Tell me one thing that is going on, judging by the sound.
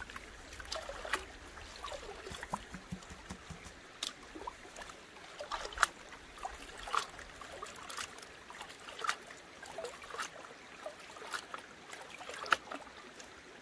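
Water sloshes and splashes in a plastic pan dipped in a stream.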